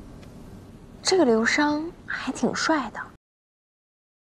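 A young woman speaks close by with surprise.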